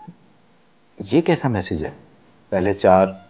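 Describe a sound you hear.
A middle-aged man speaks sternly and close by.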